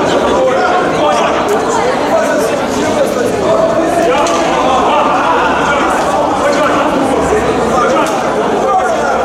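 A crowd of people shout and chatter in a large echoing hall.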